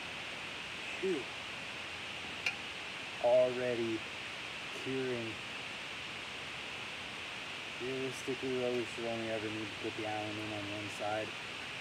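A young man speaks calmly, close by, in short phrases.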